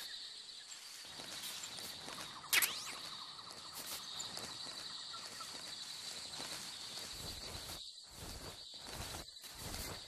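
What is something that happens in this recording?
Grass and leaves rustle as someone crawls through undergrowth.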